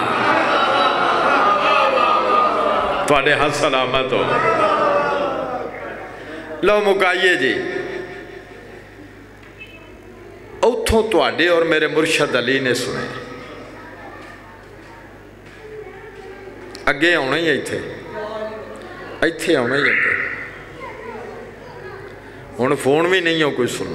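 A man speaks forcefully into a microphone, heard through loudspeakers in a reverberant hall.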